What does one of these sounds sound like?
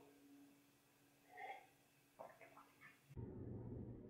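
A mug is set down on a table.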